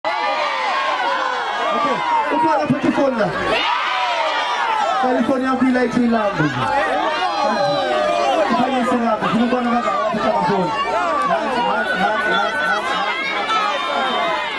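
A man sings loudly through a microphone and loudspeakers.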